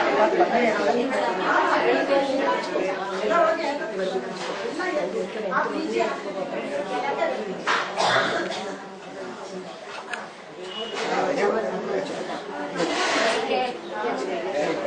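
Several women chat nearby, overlapping one another.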